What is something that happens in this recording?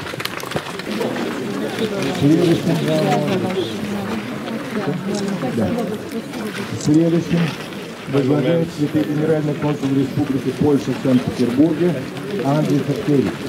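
A woman sings nearby outdoors.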